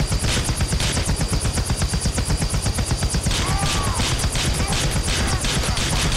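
A pistol fires rapid shots.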